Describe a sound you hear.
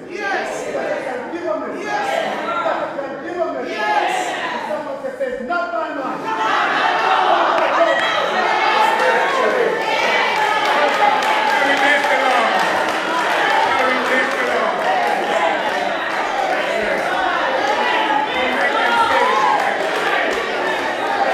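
A man preaches loudly and with fervour through a microphone in an echoing hall.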